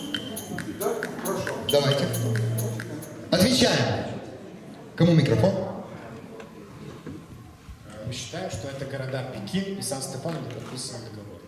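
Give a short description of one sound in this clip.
A man speaks into a microphone over a loudspeaker in a large echoing hall.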